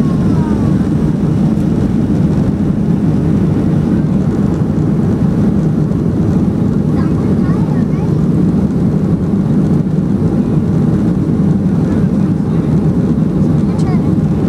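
Jet engines roar steadily as an airliner climbs after takeoff.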